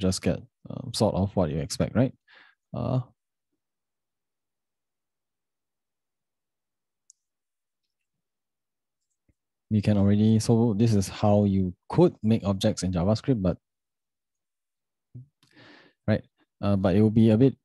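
A young man speaks calmly and closely into a microphone, with pauses.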